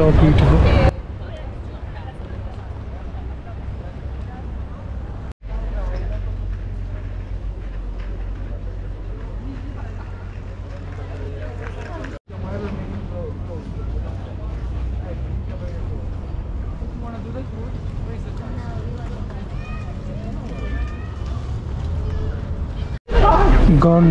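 People chatter faintly in the distance outdoors.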